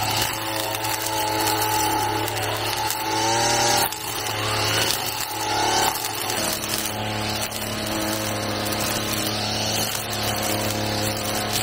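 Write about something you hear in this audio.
A trimmer line slashes through grass and weeds.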